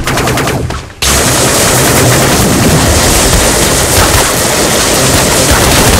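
Rapid gunfire rattles loudly and close by.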